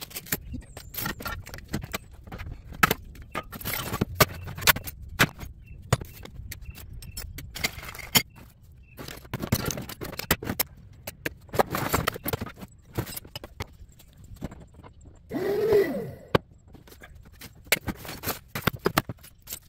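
Metal parts clatter and clink.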